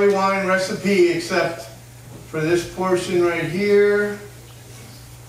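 A man speaks into a microphone in a large room, heard through loudspeakers.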